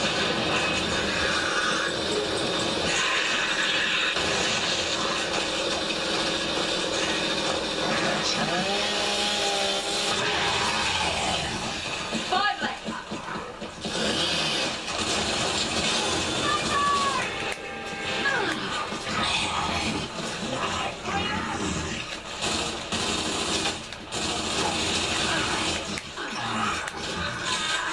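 Gunfire rattles from a video game over a loudspeaker.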